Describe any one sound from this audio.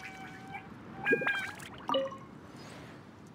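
A bright magical chime rings out.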